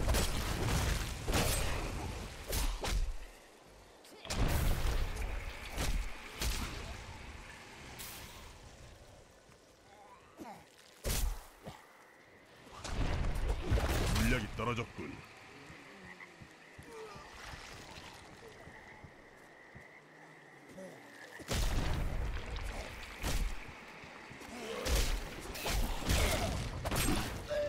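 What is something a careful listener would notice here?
Spells crackle and blast in a noisy fight.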